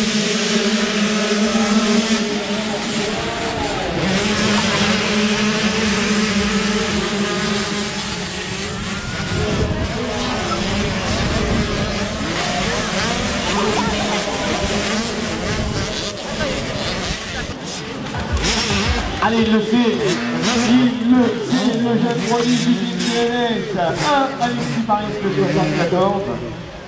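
Motorbike engines whine and rev loudly nearby.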